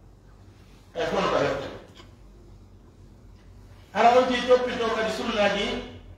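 An elderly man chants a recitation aloud in a slow, melodic voice, in an echoing room.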